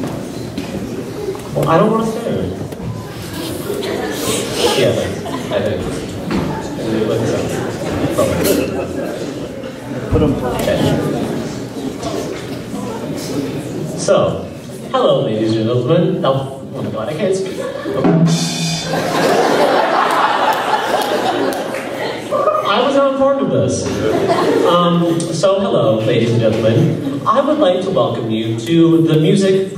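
A young man speaks into a microphone over loudspeakers in a large echoing hall.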